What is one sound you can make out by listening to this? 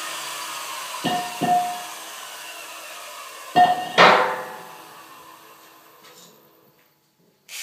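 A metal bar clangs loudly on a concrete floor, ringing as it fades.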